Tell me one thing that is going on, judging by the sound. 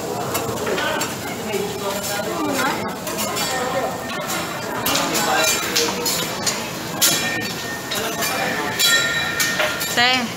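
Metal spatulas scrape and clack against a griddle.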